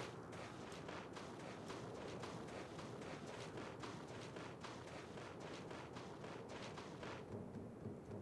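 A creature's feet patter quickly.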